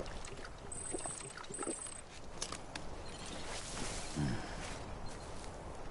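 A man gulps a drink.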